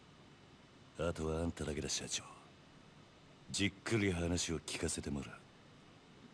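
A man speaks in a low, calm, menacing voice.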